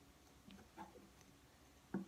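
Chalk scrapes across cloth.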